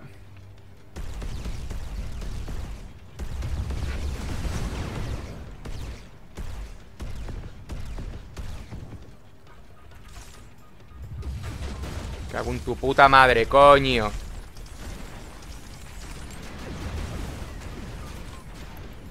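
Laser weapons fire and crackle in a video game.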